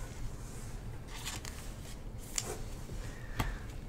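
A card slides and rustles against a plastic sleeve and cardboard.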